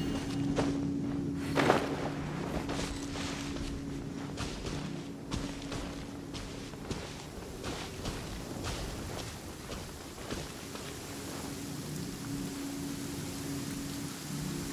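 Footsteps patter quickly through grass.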